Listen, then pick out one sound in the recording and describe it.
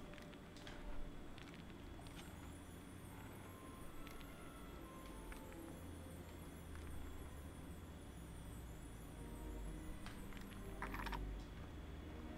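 Plastic bricks click together.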